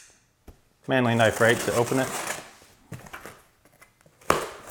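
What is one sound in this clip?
A knife slices through packing tape.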